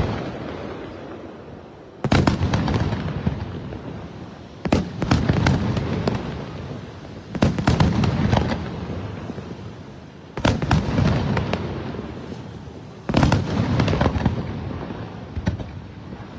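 Fireworks boom loudly outdoors in bursts every few seconds.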